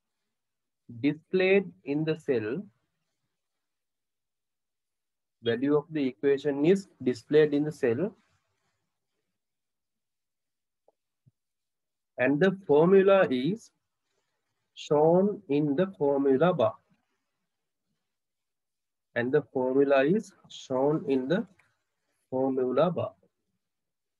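A man explains calmly and steadily, close to a microphone, with pauses between phrases.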